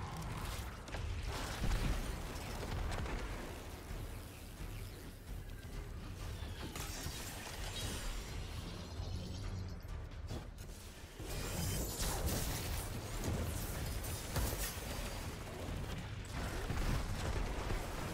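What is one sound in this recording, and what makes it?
Gunfire from a rifle cracks in rapid bursts.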